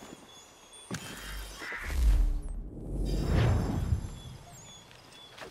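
A deep rushing whoosh swells and fades.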